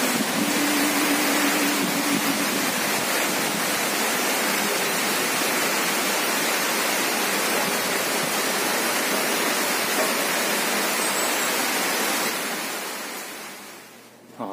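Heavy rain pours steadily onto dense foliage.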